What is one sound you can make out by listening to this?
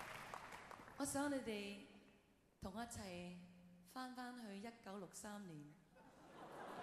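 A middle-aged woman speaks with animation through a microphone in a large hall.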